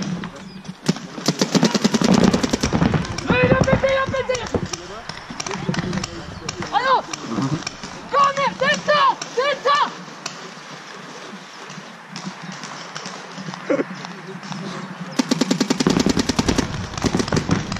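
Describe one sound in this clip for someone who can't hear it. Paintball markers fire rapid bursts of shots outdoors.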